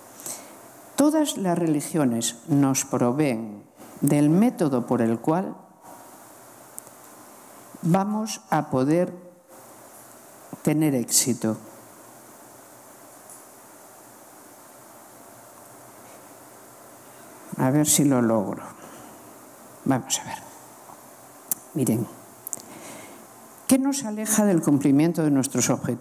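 A woman speaks calmly through a microphone over loudspeakers, in pauses, in a large room.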